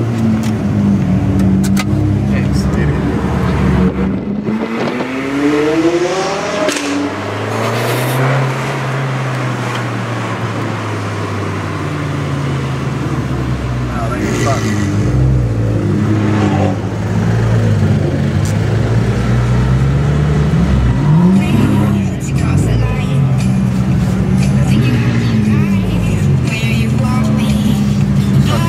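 A sports car engine rumbles and burbles at low speed.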